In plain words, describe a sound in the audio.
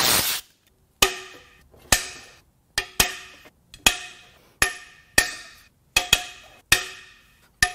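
A ratchet wrench clicks in repeated strokes.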